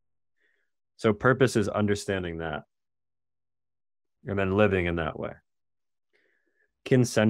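A man speaks calmly and clearly into a close microphone, with pauses.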